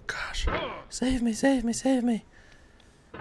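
A young man shouts and groans in frustration.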